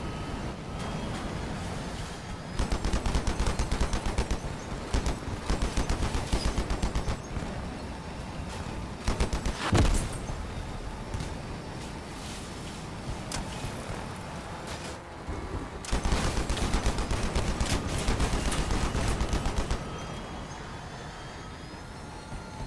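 A large engine rumbles steadily.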